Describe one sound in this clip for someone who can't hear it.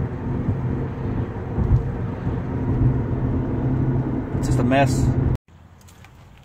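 Road noise rumbles steadily inside a moving car.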